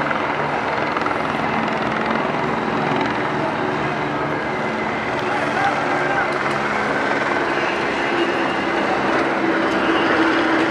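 A crowd murmurs and shouts from the street below.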